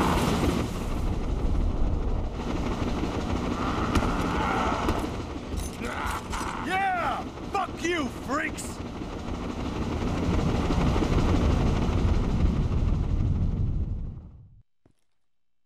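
A deep, steady rumble of roaring fire and bubbling lava fills the space, then cuts off.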